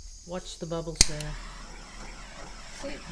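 A torch flame hisses steadily.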